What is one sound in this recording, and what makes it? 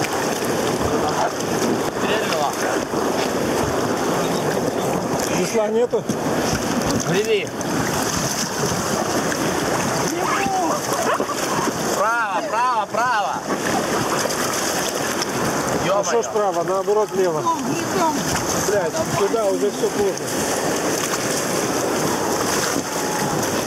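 Rushing water roars steadily all around.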